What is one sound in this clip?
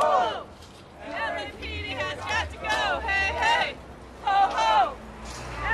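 A woman shouts loudly close by.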